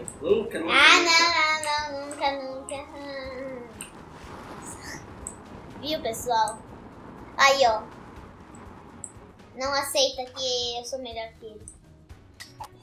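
A young girl talks and laughs excitedly, close to a microphone.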